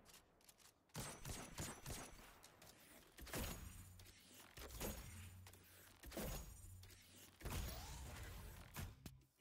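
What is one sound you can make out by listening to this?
A heavy gun fires loud single shots with booming echoes.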